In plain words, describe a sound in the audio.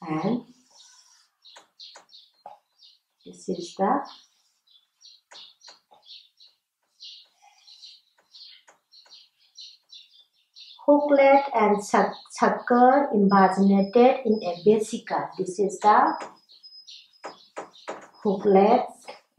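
A woman speaks calmly, as if explaining, close by.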